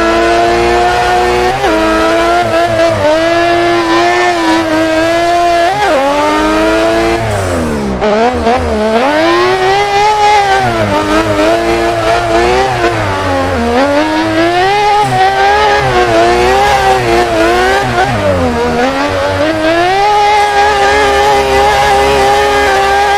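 A rotary-engined sports car revs up and down hard while drifting.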